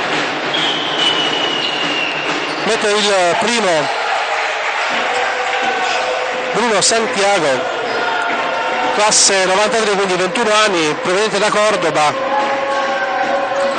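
A crowd chants and sings loudly in an echoing hall.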